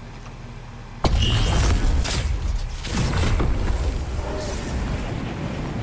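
A loud whooshing blast bursts out suddenly.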